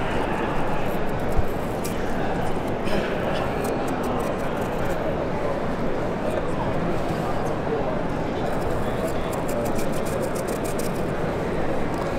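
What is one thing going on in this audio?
A knife slices and scrapes through firm vegetable skin.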